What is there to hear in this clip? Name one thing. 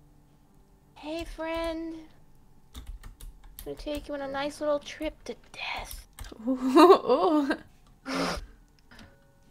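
A young woman talks and laughs with animation into a close microphone.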